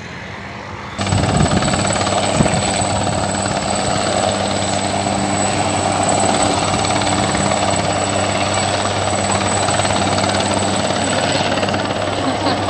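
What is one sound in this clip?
A helicopter hovers nearby with a steady, loud rotor drone.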